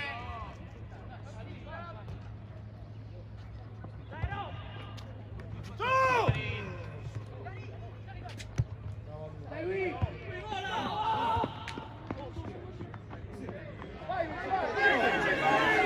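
Spectators shout and call out loudly outdoors.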